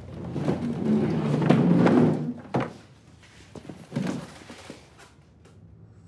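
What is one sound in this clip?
A wooden chair scrapes and knocks on a hard floor.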